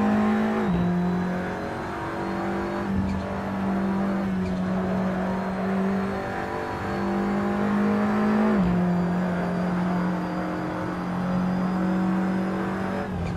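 A racing car engine drones steadily, its pitch rising and dropping with gear changes.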